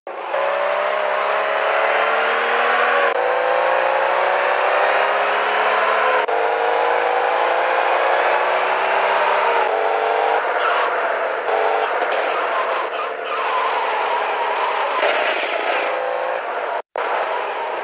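A car engine revs hard, rising in pitch again and again as it shifts gears.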